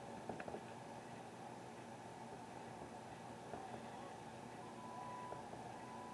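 Wooden framing creaks and crashes as it collapses.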